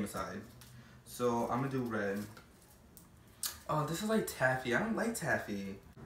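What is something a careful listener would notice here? Sweet wrappers crinkle in a young man's hands.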